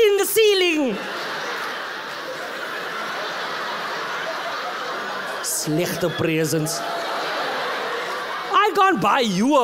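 An audience laughs loudly.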